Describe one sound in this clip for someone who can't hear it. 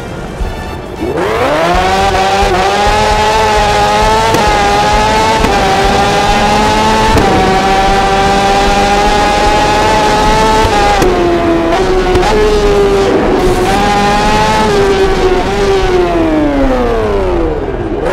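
A motorcycle engine roars and climbs steadily through the gears, then winds down into a bend.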